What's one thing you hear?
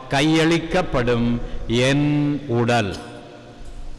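A man chants in a deep voice through a microphone, echoing in a large hall.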